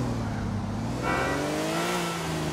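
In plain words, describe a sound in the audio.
Tyres squeal as a car swerves sharply.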